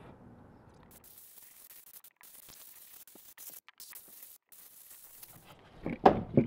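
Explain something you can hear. An aerosol can hisses as it sprays.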